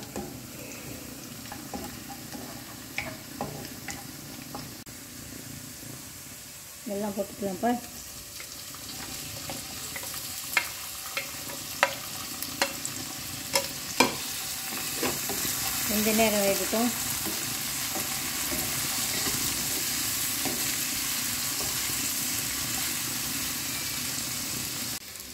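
Food sizzles in hot oil in a pan.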